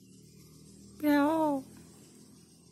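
A peacock gives a loud, wailing call once.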